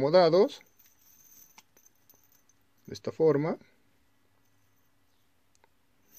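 Small metal rings clink together in a palm.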